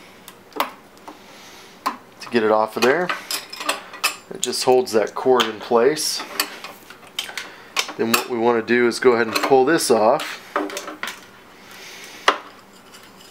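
A small metal part clicks and taps as it is handled.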